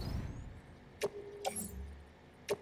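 Short electronic clicks sound now and then.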